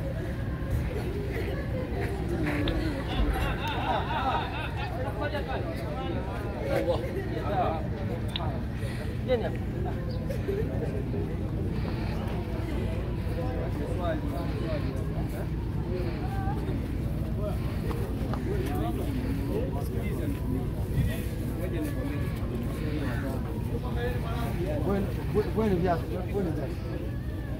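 Men in a crowd talk and call out around the microphone, outdoors.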